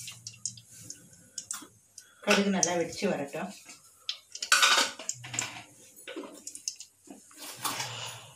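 Oil sizzles softly in a pot.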